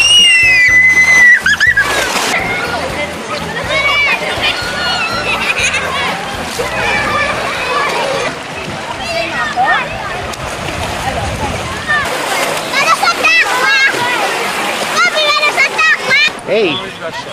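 Water splashes as children play in a pool.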